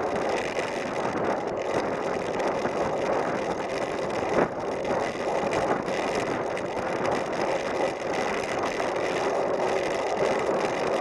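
Wind buffets loudly across a microphone outdoors.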